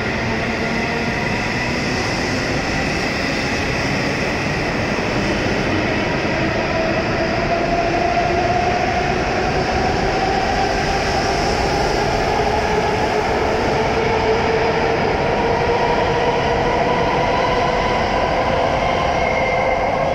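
A high-speed train glides past with a loud, steady rushing roar and a rising whine.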